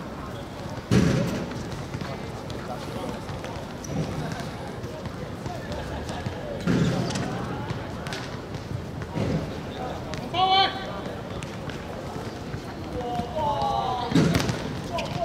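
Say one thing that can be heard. A football is kicked hard on an outdoor court.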